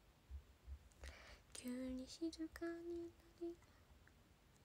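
A young woman speaks softly and briefly, close by.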